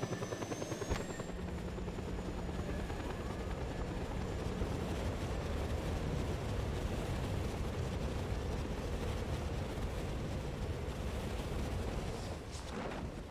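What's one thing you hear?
Wind rushes loudly past a falling skydiver.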